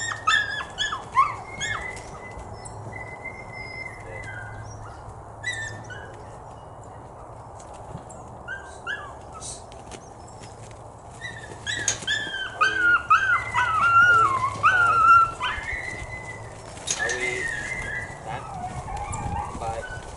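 Sheep shuffle and trample on frozen grass close by.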